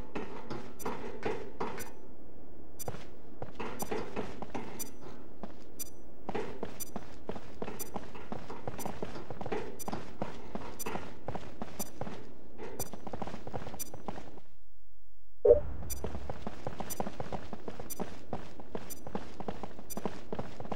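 Footsteps clank on a metal ladder, then thud steadily across a hard floor.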